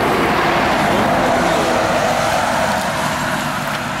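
A truck drives past.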